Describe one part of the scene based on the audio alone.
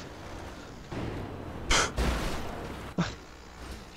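A car crashes and tumbles with loud knocks.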